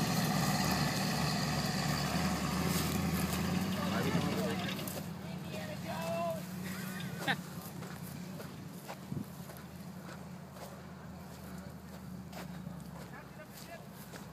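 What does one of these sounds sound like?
A pickup truck engine roars as it drives away over rough ground and slowly fades.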